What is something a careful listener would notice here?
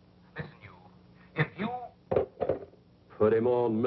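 A telephone handset clatters as it is set down.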